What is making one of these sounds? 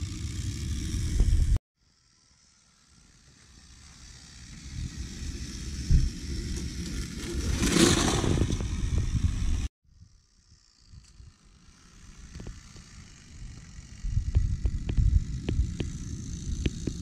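A toy train rumbles and clatters along plastic track.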